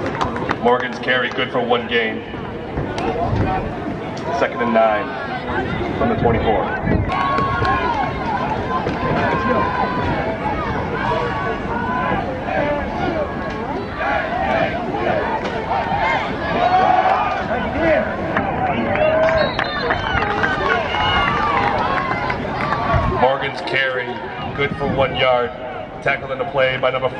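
A crowd cheers and chatters loudly outdoors.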